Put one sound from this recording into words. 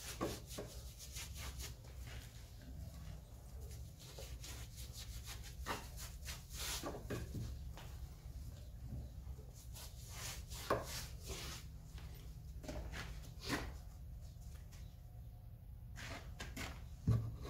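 A trowel scrapes plaster onto a wall.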